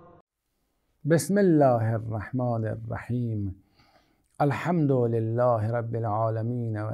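An elderly man speaks calmly and clearly, close to a microphone.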